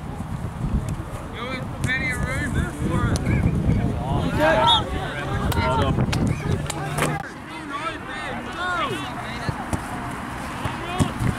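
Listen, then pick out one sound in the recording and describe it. Young players shout and call out across a field outdoors.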